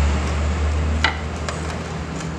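A metal motorcycle part clanks as it is shifted by hand.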